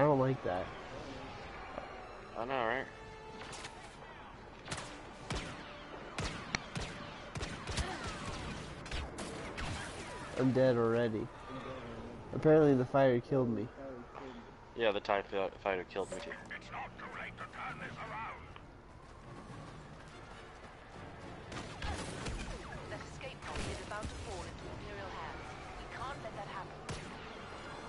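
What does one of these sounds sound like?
Blaster shots fire in rapid bursts.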